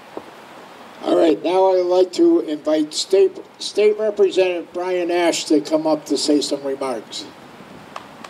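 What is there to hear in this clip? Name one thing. An elderly man speaks firmly through a microphone and loudspeaker outdoors.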